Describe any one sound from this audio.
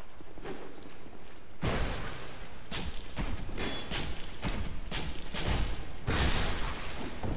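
Metal blades clash and clang in a fight.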